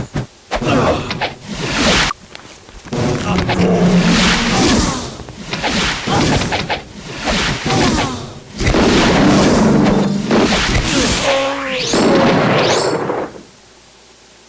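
Magic blasts roar and crackle in bursts.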